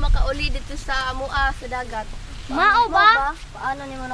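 A young girl asks questions close by.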